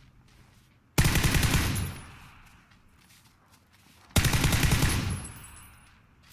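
A rifle fires loud bursts of shots that echo outdoors.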